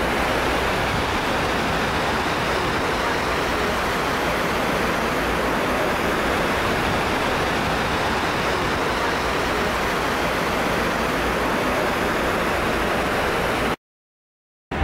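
Water pours steadily down a wall into a pool with a loud rushing roar.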